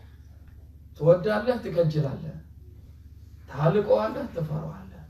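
A middle-aged man speaks calmly and with emphasis, close by.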